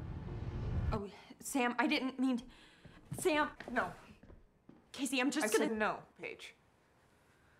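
A young woman speaks sharply and with agitation, close by.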